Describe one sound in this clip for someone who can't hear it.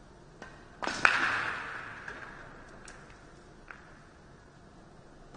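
Billiard balls clack together and roll across the table.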